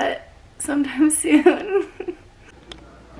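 A young woman speaks cheerfully close to a microphone.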